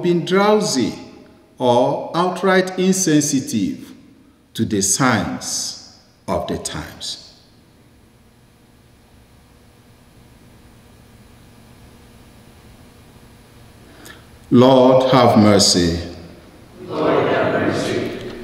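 A man prays aloud in a calm, steady voice, heard through a microphone in an echoing room.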